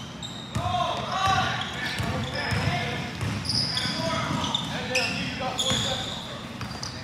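Teenage boys call out to each other loudly in a large echoing gym.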